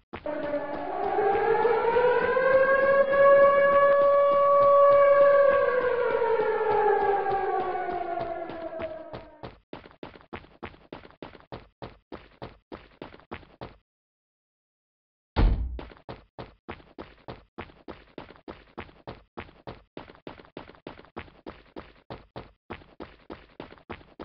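Footsteps run at a quick, even pace.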